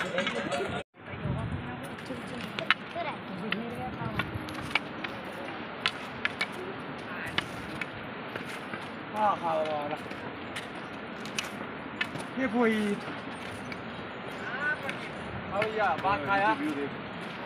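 Walking sticks tap on a stone path.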